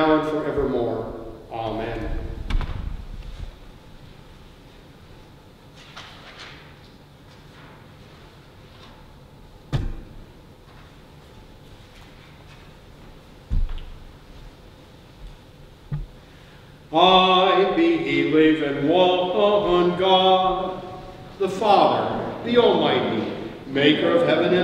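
An elderly man chants through a microphone in a reverberant hall.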